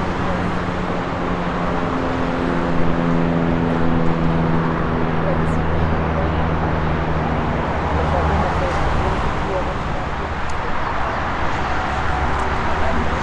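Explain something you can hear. A Boeing 747 jet airliner roars along the runway in the distance.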